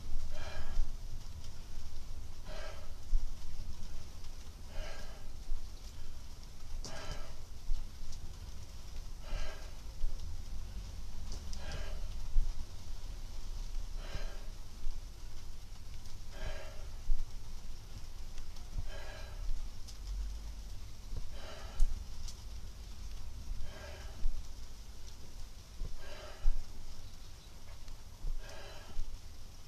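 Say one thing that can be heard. A man grunts and exhales hard with each pull-up, at an even pace.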